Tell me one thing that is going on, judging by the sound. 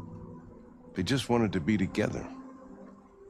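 An older man speaks in a low, weary voice.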